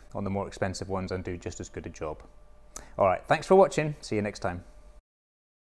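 A man speaks to the listener clearly and with animation, close to the microphone.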